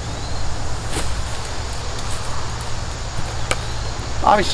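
Climbing gear knocks sharply against a tree trunk.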